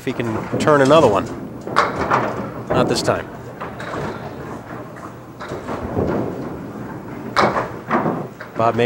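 Pins clatter and topple as a ball strikes them.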